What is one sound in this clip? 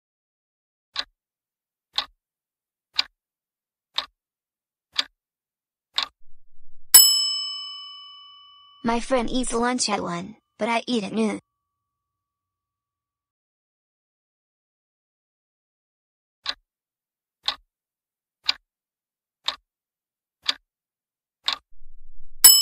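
A timer ticks once a second, counting down.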